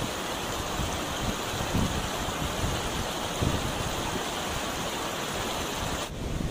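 Muddy floodwater rushes and churns over rocks.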